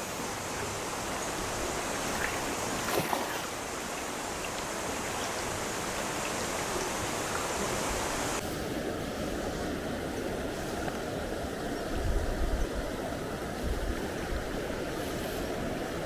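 A shallow river rushes steadily over rocks nearby.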